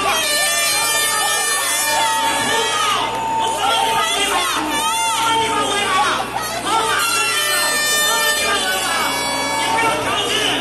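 A crowd of protesters shouts and chants loudly outdoors.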